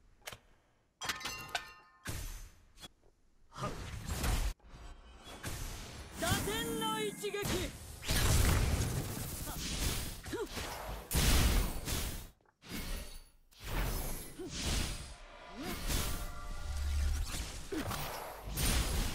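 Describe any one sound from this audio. Game spell effects whoosh, crash and explode in rapid bursts.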